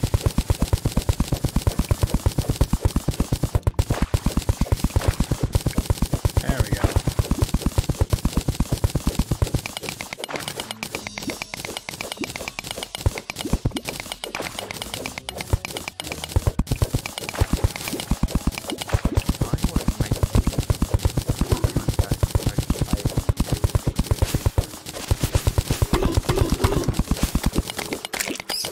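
A pickaxe chips rapidly and rhythmically at rock.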